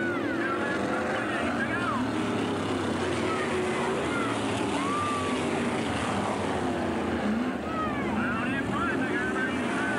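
Race car engines roar and whine loudly.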